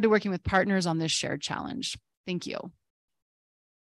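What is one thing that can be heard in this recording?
A woman speaks calmly into a microphone, heard over an online call.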